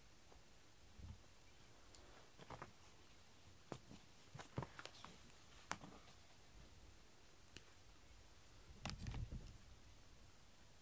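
A cat thumps and rolls around on a mat close by.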